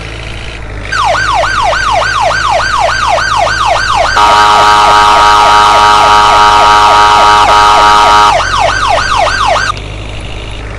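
An ambulance siren yelps rapidly.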